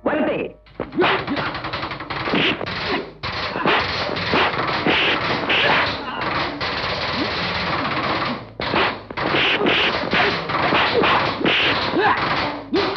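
Punches and kicks thud and smack in a fight.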